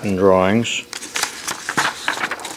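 Paper pages rustle and flap as they are flipped.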